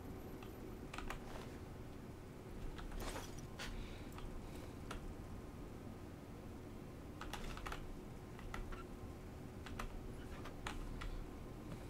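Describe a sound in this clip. Short game menu clicks and beeps sound.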